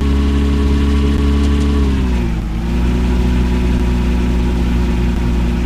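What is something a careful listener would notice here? A car engine hums steadily, then drops in pitch as the car slows.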